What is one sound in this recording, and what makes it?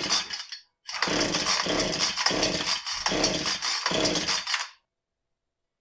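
A chainsaw's starter cord rasps as it is pulled several times.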